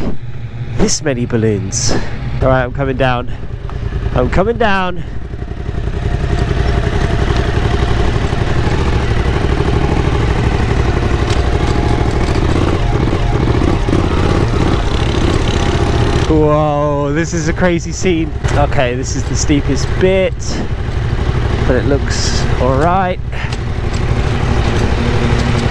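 An off-road vehicle's engine rumbles and revs.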